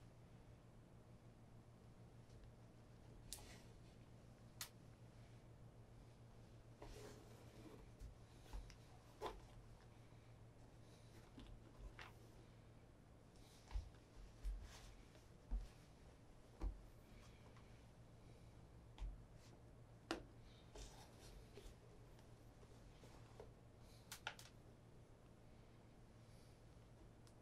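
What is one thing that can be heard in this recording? Shoelaces rustle and slip through the eyelets of a leather shoe.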